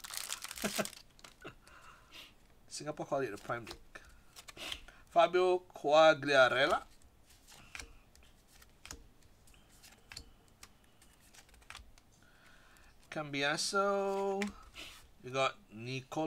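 Trading cards slide and tick softly against each other as they are flipped.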